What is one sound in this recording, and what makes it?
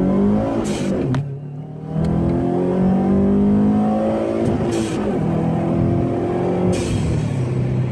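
A car engine's note drops briefly at each gear change.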